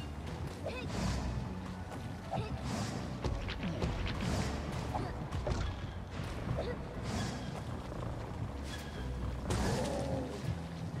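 A game character dashes through the air with a whoosh.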